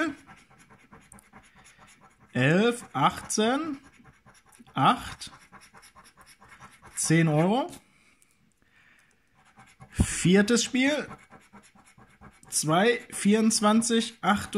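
A coin scratches rapidly across a scratch card.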